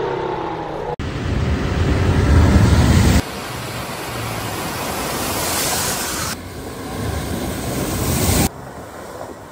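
Water splashes loudly as a car drives through it.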